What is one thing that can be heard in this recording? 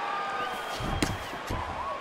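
A punch lands with a dull smack.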